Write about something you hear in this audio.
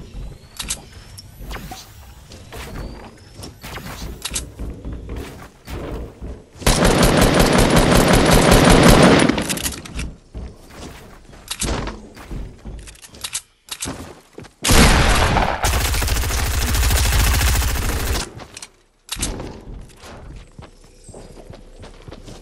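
Wooden building pieces snap into place with quick, repeated clacks.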